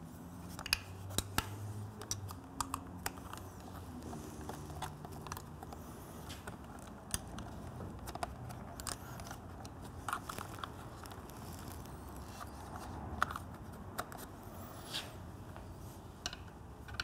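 A screwdriver clicks and scrapes against metal parts.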